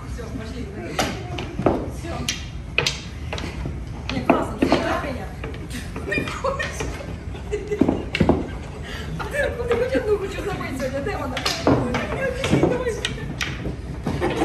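Pool balls click against each other.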